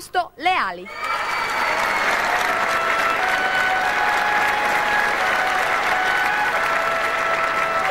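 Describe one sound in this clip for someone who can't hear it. A large audience applauds in a big hall.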